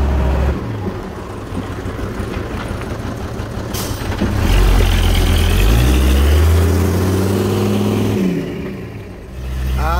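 Truck tyres crunch over a dirt road.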